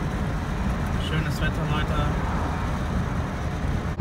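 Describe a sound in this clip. A young man talks inside a moving car.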